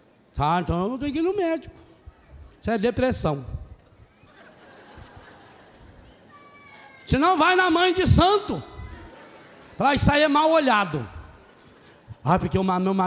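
A middle-aged man speaks with animation into a microphone, in bursts with pauses, in a large echoing hall.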